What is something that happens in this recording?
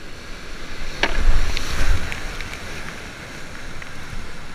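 Water crashes loudly over a kayak as it drops over a fall.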